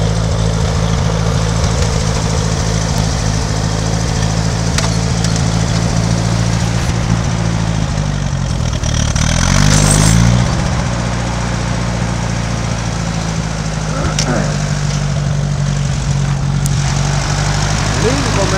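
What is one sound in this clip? A tractor engine idles with a steady, low rumble.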